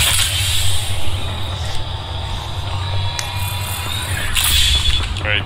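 A syringe injects with a soft hiss and electric crackle.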